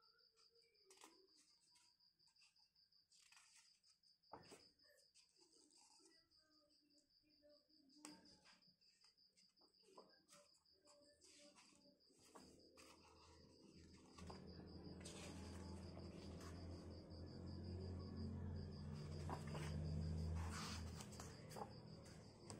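Paper pages rustle and flap as a book's pages are turned.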